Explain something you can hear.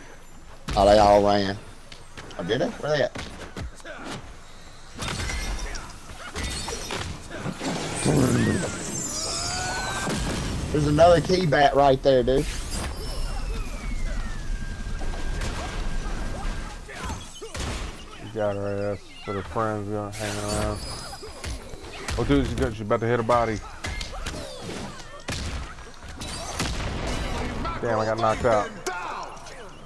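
Game sound effects of hits and blasts burst out again and again.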